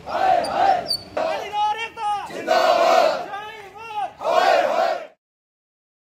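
A crowd of men chants slogans in unison outdoors.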